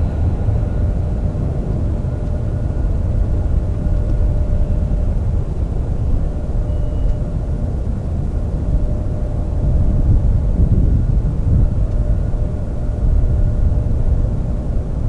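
Jet engines roar steadily with a high whine, close by.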